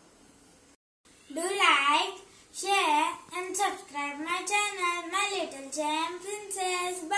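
A young girl speaks brightly and with animation, close by.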